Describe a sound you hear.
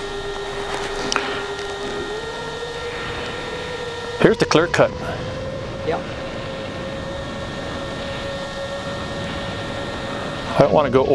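A small drone's motors whine steadily, rising slightly in pitch.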